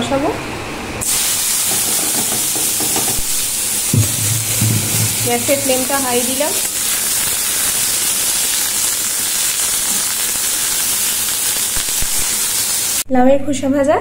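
Vegetables sizzle loudly in hot oil in a pan.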